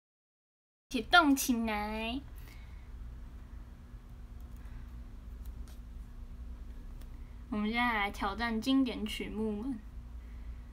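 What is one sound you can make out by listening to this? A young woman speaks close by in a bright, playful voice, in short bursts.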